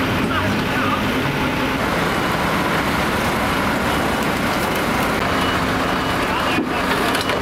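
A truck engine rumbles steadily nearby.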